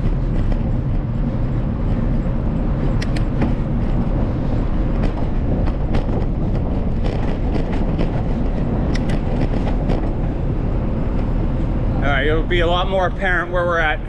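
Tyres roll over rough asphalt with a low rumble.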